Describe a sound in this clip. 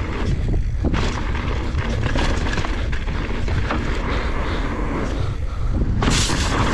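Bicycle tyres crunch and rattle over a rough dirt trail.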